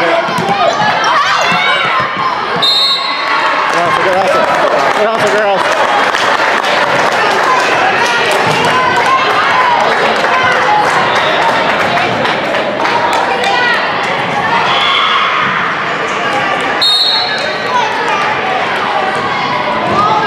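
Teenage girls shout and cheer with animation in a large echoing gym.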